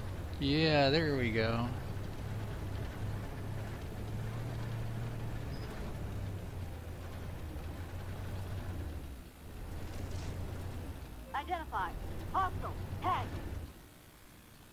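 A tank engine rumbles low and steady.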